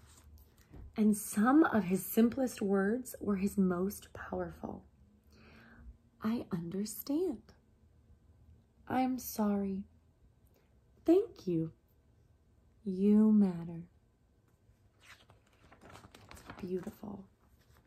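A young woman reads aloud with animation, close to a microphone.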